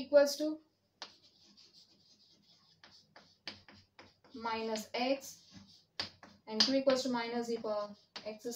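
Chalk taps and scrapes on a chalkboard while writing.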